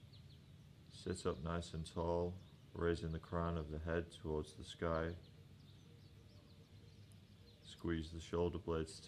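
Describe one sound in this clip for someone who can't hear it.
A man speaks calmly and softly, close to a microphone.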